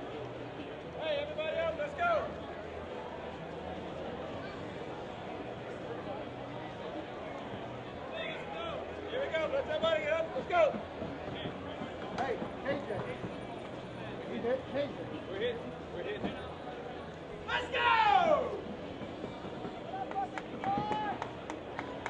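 Men shout calls across an outdoor field.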